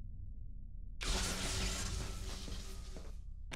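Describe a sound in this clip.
An electric shock crackles and hisses.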